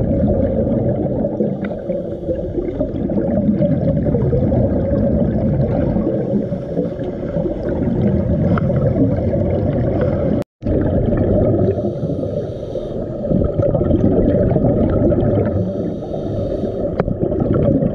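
Air bubbles from a diver's breathing gurgle and rumble, muffled underwater.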